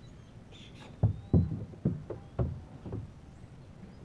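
Hollow thumps knock on a small boat's deck.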